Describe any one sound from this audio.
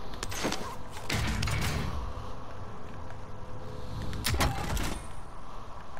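Gear is picked up with a short clattering rattle.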